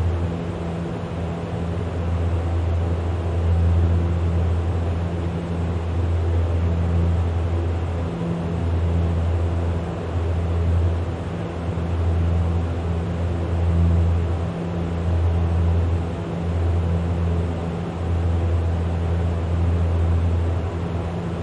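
An aircraft engine drones steadily and loudly, with a low hum that rises and falls slightly.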